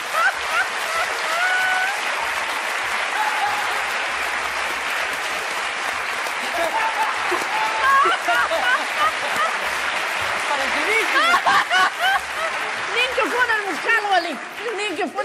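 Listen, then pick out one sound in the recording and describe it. A studio audience applauds loudly.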